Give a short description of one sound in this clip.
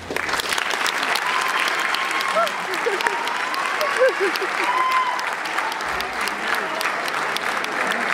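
A large audience cheers and screams loudly in an echoing hall.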